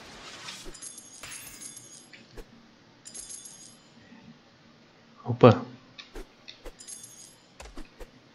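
Bright game chimes jingle briefly.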